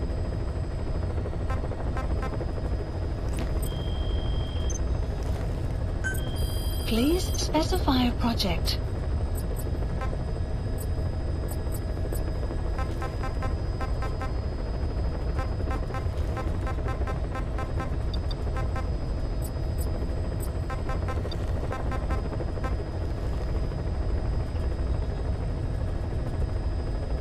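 Short electronic blips sound as menu selections change.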